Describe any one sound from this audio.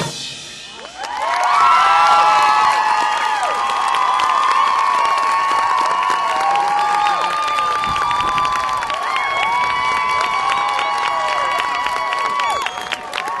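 A large marching band plays loud brass music outdoors.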